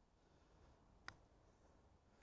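A putter taps a ball softly.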